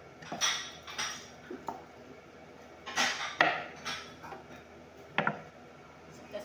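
A knife slices through crisp vegetables with short sharp cuts.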